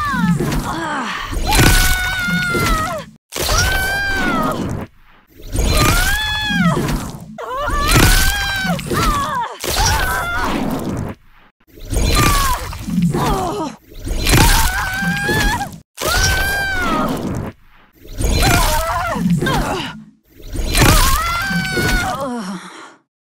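Magical energy whooshes and crackles in short, repeated bursts.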